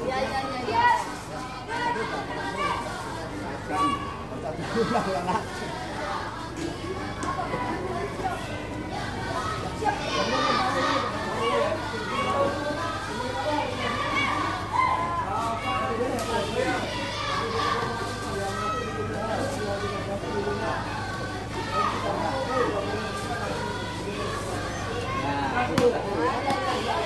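A young woman speaks up, directing the children.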